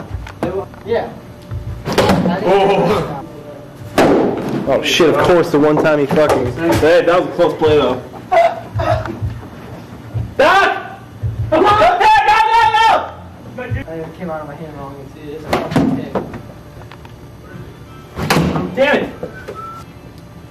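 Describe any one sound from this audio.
Young men talk and shout with animation in an echoing corridor.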